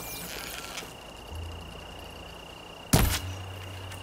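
A bowstring creaks as it is drawn back.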